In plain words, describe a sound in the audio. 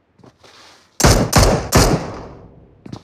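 Gunshots fire in quick bursts and echo away.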